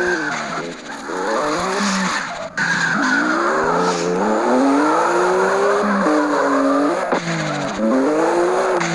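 Tyres screech on the road.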